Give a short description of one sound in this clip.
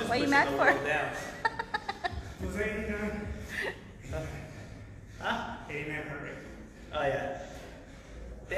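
A man talks with animation in an echoing room.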